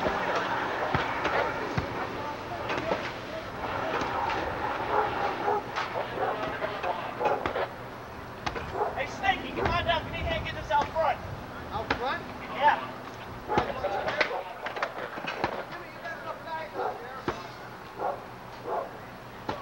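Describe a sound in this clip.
Men shout to each other at a distance outdoors.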